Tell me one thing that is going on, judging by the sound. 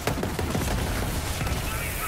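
An explosion bursts with a crackling blast.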